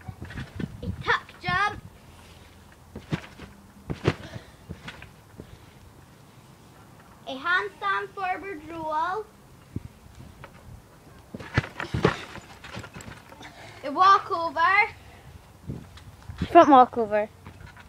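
A young girl sings in a high voice close by.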